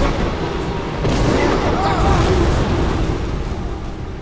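A loud magical blast whooshes and rumbles.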